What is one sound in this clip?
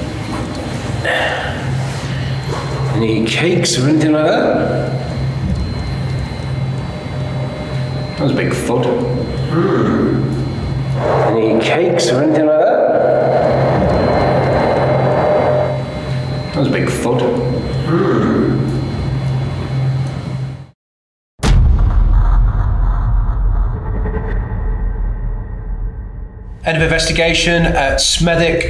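A middle-aged man speaks calmly close to the microphone.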